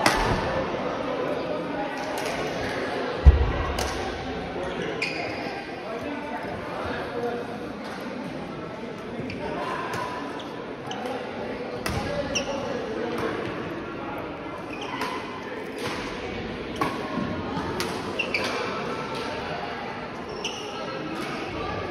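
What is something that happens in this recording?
Sounds echo around a large hall.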